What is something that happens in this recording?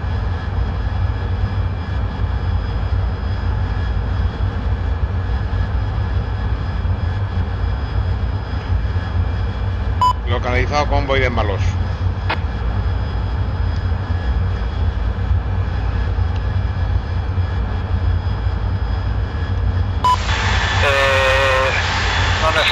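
A jet engine drones steadily from inside a cockpit.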